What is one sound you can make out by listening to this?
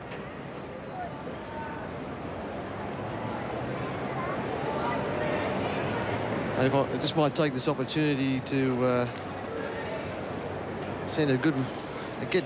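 A large crowd murmurs across an open stadium.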